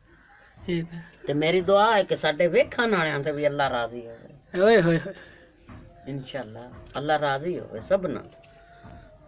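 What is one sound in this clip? An elderly woman speaks in a sing-song voice close by.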